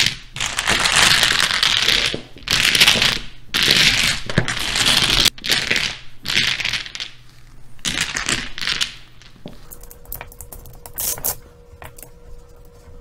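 Plastic tiles clatter and rattle as hands shuffle them across a table, close by.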